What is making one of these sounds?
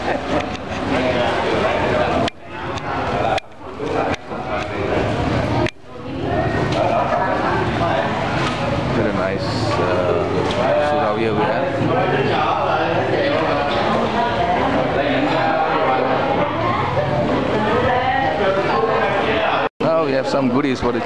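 A crowd of men and women chatter nearby in an echoing hall.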